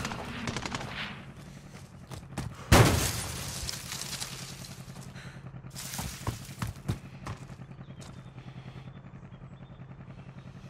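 Footsteps run quickly over forest ground.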